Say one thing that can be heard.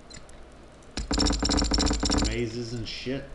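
A stone monster roars loudly.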